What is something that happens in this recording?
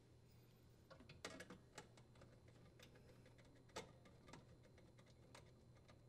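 A screwdriver scrapes and clicks as a nut is loosened.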